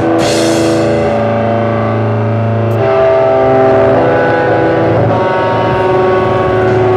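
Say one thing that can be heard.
An electric guitar plays loud sustained chords.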